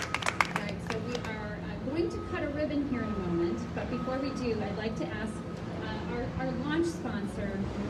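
A woman speaks calmly into a microphone over a loudspeaker outdoors.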